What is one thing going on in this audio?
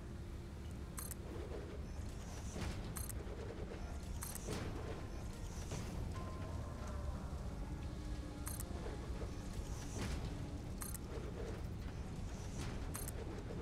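Short clicks sound as building pieces snap into place.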